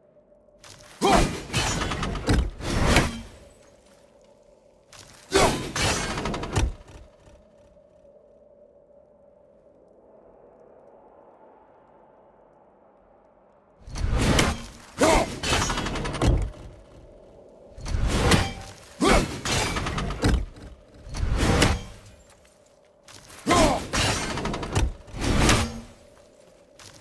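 A thrown axe strikes with heavy metallic impacts.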